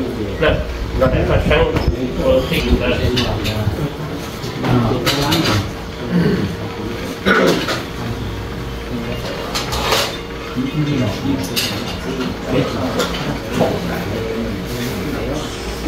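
Several middle-aged men talk casually nearby.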